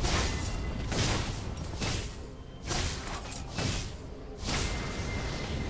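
Spell effects crackle and clash in a fast fight.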